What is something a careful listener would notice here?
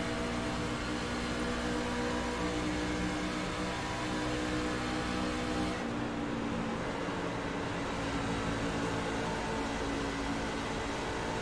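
Other race cars drone nearby on the track.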